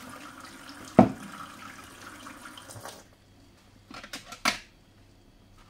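Items clink and knock on a countertop.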